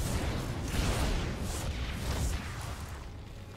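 Game gunfire and blasts crackle.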